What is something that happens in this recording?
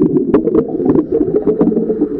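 Air bubbles gurgle and rumble loudly underwater.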